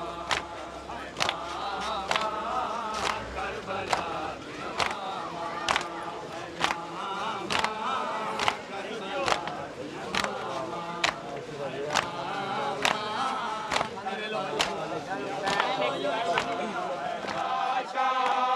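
A crowd of men chant together loudly outdoors.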